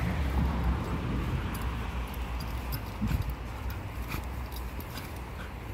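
Small dogs sniff and snuffle close by.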